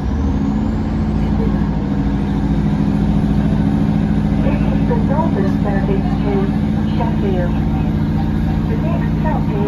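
A train hums and rumbles steadily as it rolls slowly, heard from inside a carriage.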